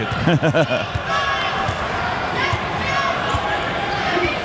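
A basketball bounces on a hardwood floor in a steady dribble.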